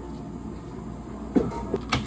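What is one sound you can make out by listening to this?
Thick syrup squeezes from a squeeze bottle.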